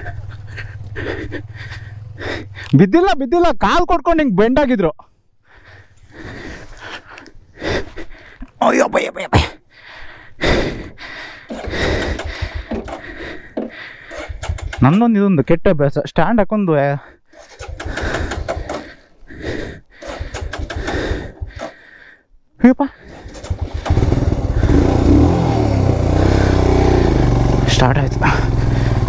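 A single-cylinder adventure motorcycle engine thumps along at low speed.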